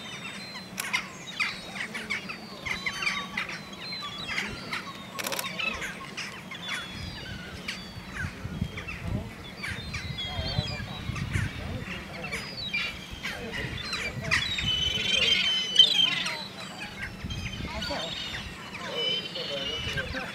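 Gulls and small birds call and chirp nearby, outdoors.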